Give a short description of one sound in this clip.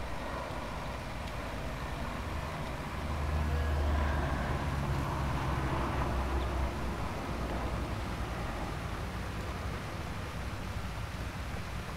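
A cultivator scrapes through the soil.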